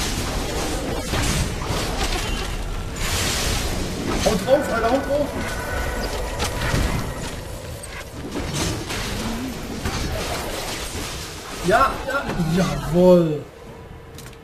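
Fantasy game battle effects clash and crackle with spells and hits.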